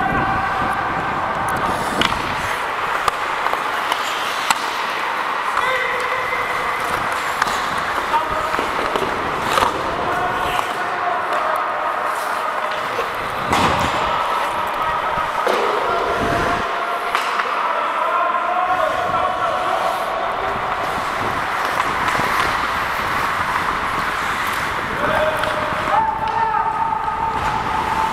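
Men shout to each other across a large echoing rink.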